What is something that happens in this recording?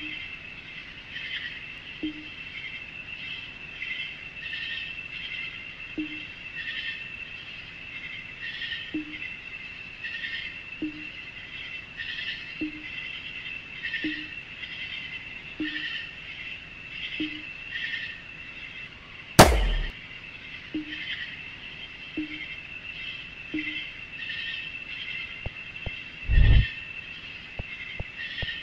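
Short electronic beeps chirp quickly, over and over, as text types out.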